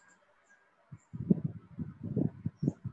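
A child talks briefly through an online call.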